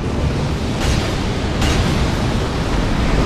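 A sword whooshes through the air in sudden swipes.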